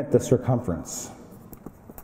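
A pen scratches on paper close by.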